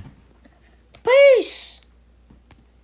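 A young boy sings a short high note that rises and falls.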